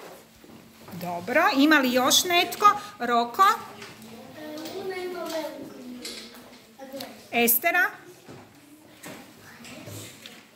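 Several children talk and call out in a room.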